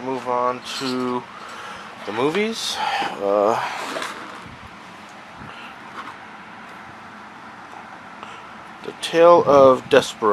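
A plastic case clatters softly as a hand lifts it up.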